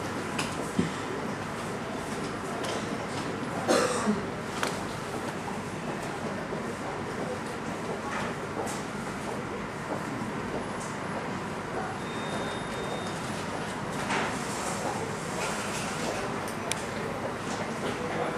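The jet engines of a Boeing 737-300 whine and roar as the airliner taxis.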